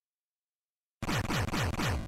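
Upbeat chiptune music with a bouncing bass plays.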